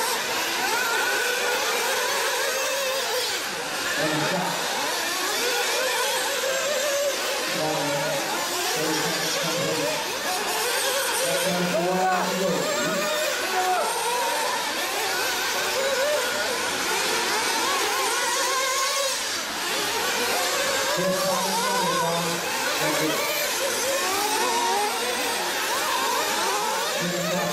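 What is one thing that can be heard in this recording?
Small model car engines buzz and whine as the cars race and rev.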